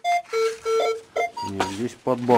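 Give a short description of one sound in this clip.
A metal detector gives a series of short electronic beeps.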